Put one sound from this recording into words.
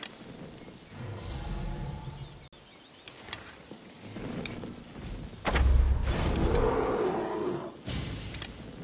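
A bear growls and roars nearby.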